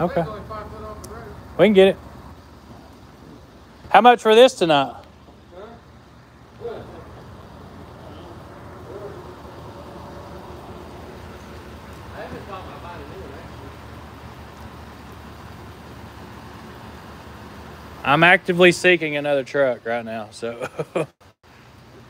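A man talks loudly and casually close by, in short bursts.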